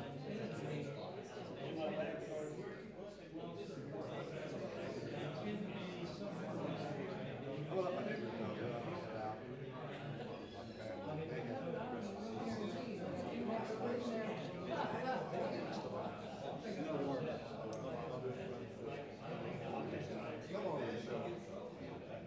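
A man talks steadily through a microphone.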